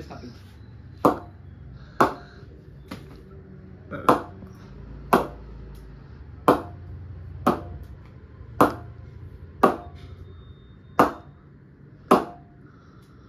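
A wooden bat is knocked sharply again and again.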